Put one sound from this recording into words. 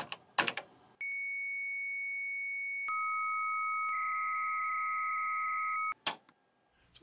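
An old computer plays steady electronic beep tones.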